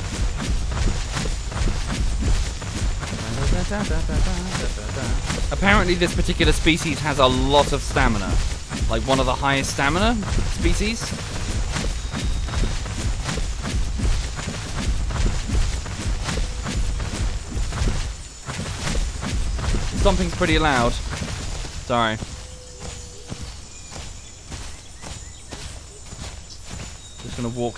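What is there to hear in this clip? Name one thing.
Heavy footsteps thud on grassy ground.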